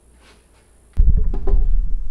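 A wooden board thumps down onto timber.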